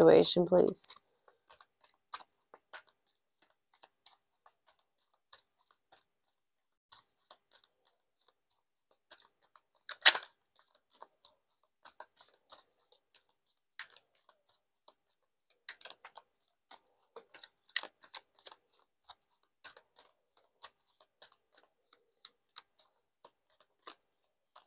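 Playing cards shuffle and flick softly.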